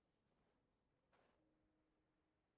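A glider snaps open with a whoosh.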